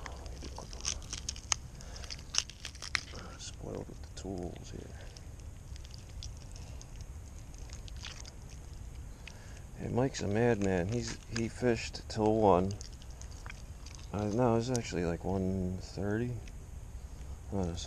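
Hands tear and peel wet fish skin.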